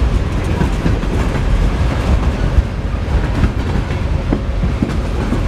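A freight train rumbles past close by, its wheels clacking on the rails.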